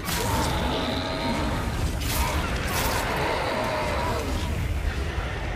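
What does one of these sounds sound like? A sword slashes and strikes with sharp hits.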